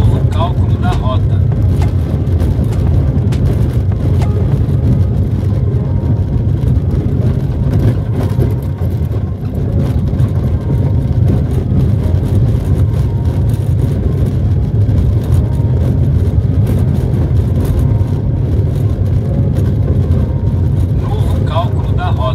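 Tyres rumble over rough paving stones.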